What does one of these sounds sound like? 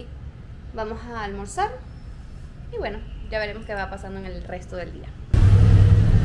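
A young woman speaks expressively and close to the microphone.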